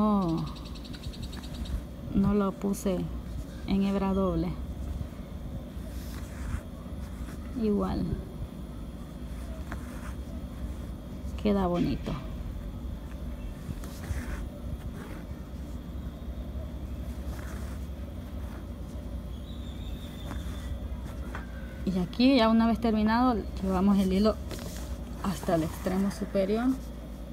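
Thread rasps softly as it is pulled through taut fabric.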